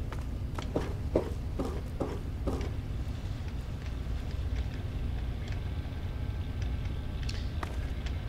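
Footsteps thud on a metal floor.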